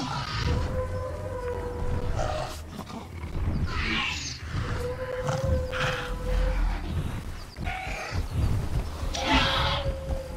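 Heavy footsteps of a huge dinosaur thud on grass.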